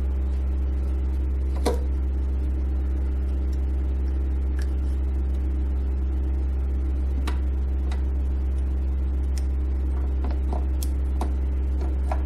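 Plastic connectors click and rattle as hands unplug and handle them.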